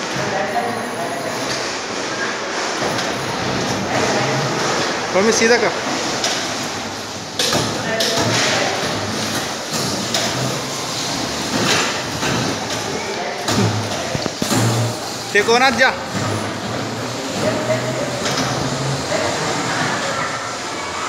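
Bumper cars hum and whir across a hard floor in a large echoing hall.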